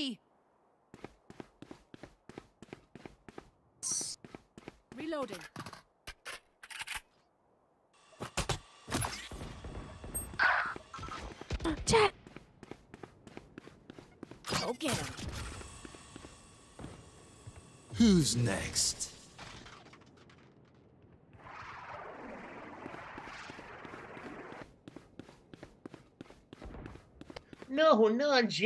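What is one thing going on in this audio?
Footsteps tap quickly and steadily on hard ground.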